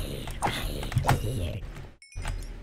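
A zombie groans low and close.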